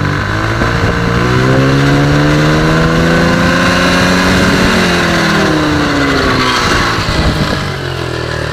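A small motorcycle engine revs up high, holds, and drops back to idle.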